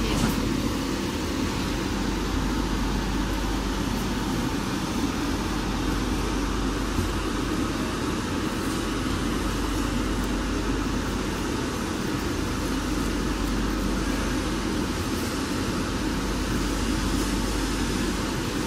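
Plastic wrapping crinkles softly as a hand touches it.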